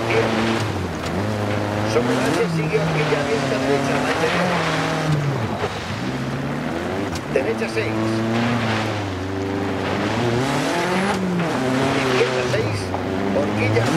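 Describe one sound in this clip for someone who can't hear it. Gravel patters under tyres.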